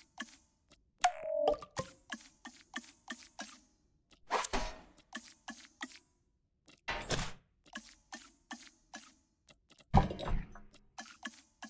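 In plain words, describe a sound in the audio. Soft electronic whooshes sweep past now and then.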